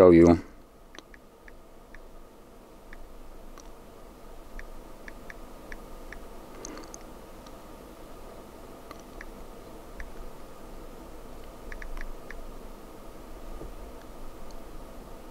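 Fingers tap softly and quickly on a touchscreen.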